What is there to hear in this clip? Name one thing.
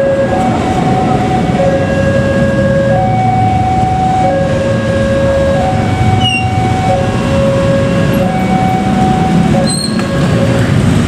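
A level crossing alarm rings with a steady two-tone chime.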